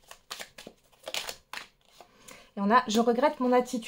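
A card is laid down on a wooden table with a soft tap.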